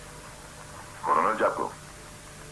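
A man speaks briefly into a telephone.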